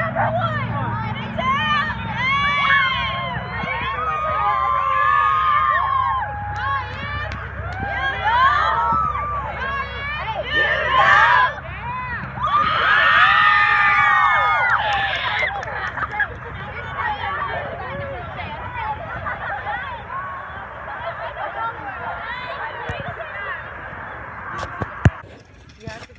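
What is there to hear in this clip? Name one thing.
A crowd of girls chatters and calls out loudly outdoors.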